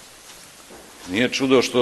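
A middle-aged man speaks into a microphone.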